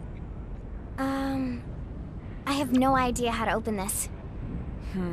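A young woman speaks hesitantly.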